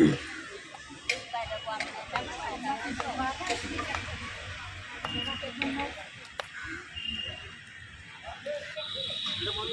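People chatter outdoors in the background.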